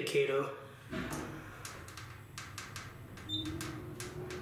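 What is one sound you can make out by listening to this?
An elevator car hums as it moves.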